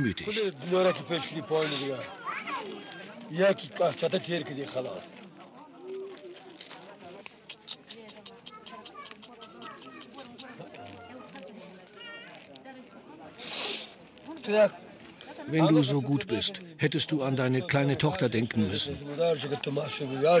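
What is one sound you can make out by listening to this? An elderly man speaks softly, close by.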